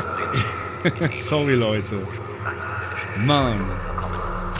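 A man laughs heartily close to a microphone.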